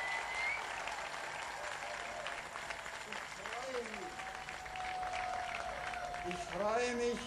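A crowd claps.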